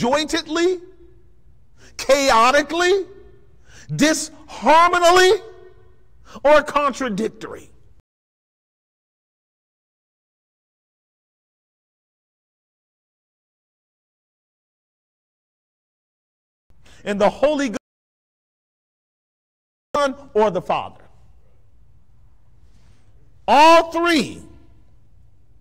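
A man preaches with animation through a microphone, pausing between phrases.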